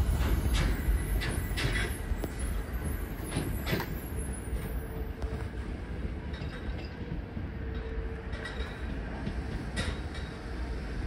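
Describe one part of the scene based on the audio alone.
Train wheels click and clatter over the track joints.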